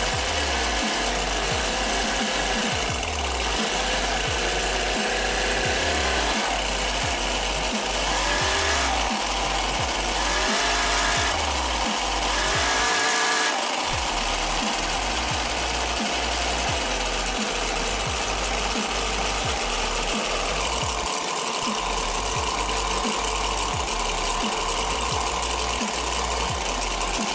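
A small engine idles loudly and steadily close by.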